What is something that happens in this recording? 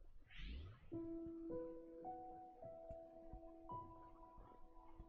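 Soft game music plays in slow, held notes.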